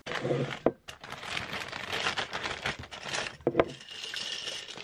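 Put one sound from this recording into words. Paper rustles and crinkles as hands pull it from a glass jar.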